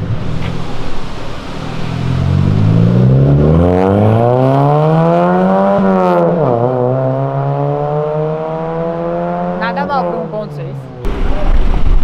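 A small car engine revs hard, climbing through the gears as the car pulls away.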